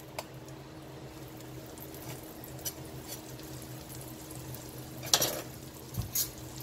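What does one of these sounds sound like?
Butter sizzles softly in a hot pan.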